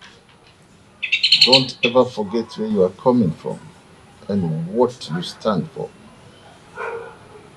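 An elderly man speaks slowly in a low voice.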